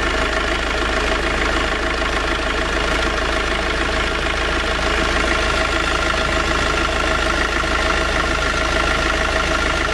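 An engine runs steadily close by with a loud, even hum and whir.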